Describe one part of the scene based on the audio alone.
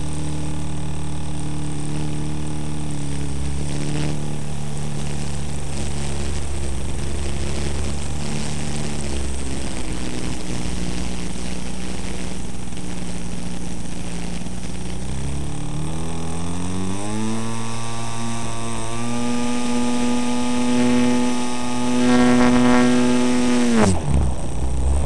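A small model plane's electric motor whines steadily, rises in pitch and then cuts off abruptly.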